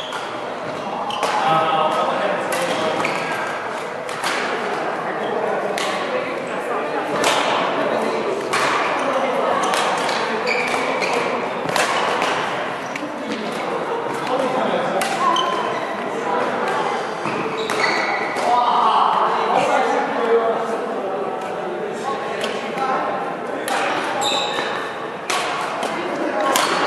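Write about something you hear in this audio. Rackets sharply smack a shuttlecock back and forth in a large echoing hall.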